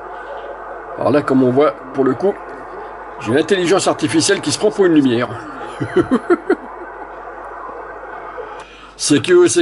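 A man talks over a radio loudspeaker in short bursts.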